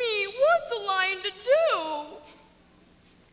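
A young woman sings in high, wavering tones.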